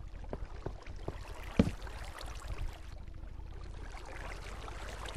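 Water flows and splashes nearby.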